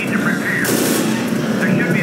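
An assault rifle fires in short bursts.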